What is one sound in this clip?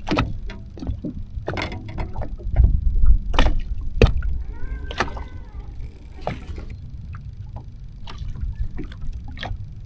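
Water laps against a boat's hull.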